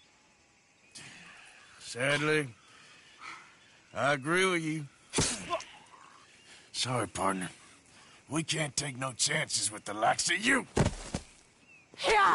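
A man speaks in a gruff, tense voice close by.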